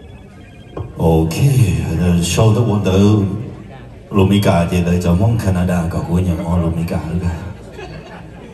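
A middle-aged man speaks loudly and with animation into a microphone over loudspeakers.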